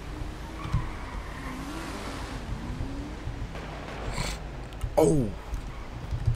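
A car engine hums as a car drives.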